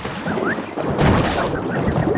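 A cartoon character lands with a heavy thud on the ground.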